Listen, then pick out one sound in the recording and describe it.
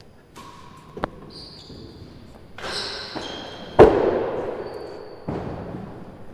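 A ball thuds off the walls and floor.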